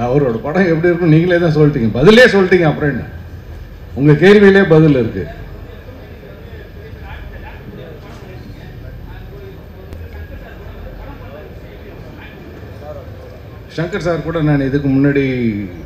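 A middle-aged man speaks calmly into a microphone, heard through loudspeakers, with pauses.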